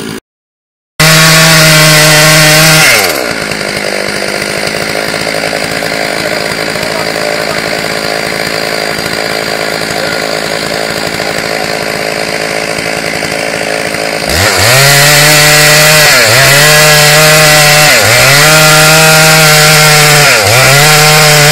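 A chainsaw engine roars loudly, revving up and down as it cuts through wood.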